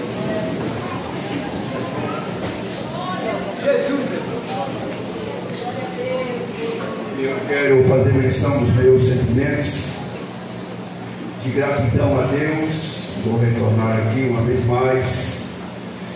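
A man speaks with animation into a microphone, amplified through loudspeakers in an echoing room.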